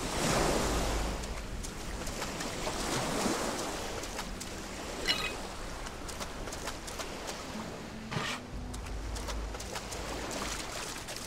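Footsteps run across sand.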